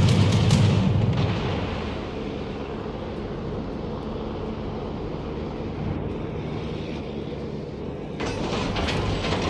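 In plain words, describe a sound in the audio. Heavy ship guns fire with a deep, rolling boom.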